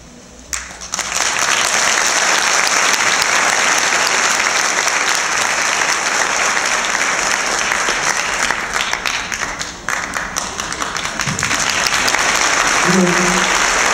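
An audience applauds and cheers loudly in a large hall.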